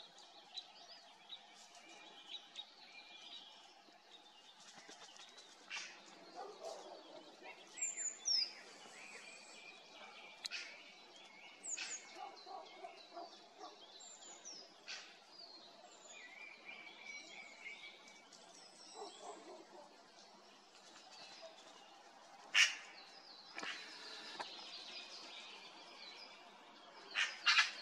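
A magpie rustles through dry leaves on the ground.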